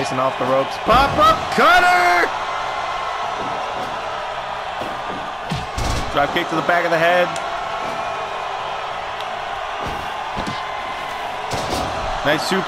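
Bodies thud heavily onto a wrestling ring mat.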